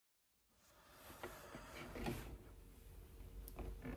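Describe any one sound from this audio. Bedding rustles close by.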